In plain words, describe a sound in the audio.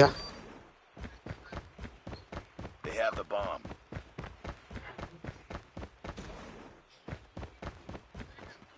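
Footsteps patter quickly and steadily on stone.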